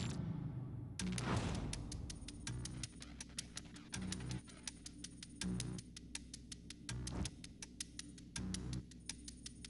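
Rapid electronic ticks sound as a game score counts up.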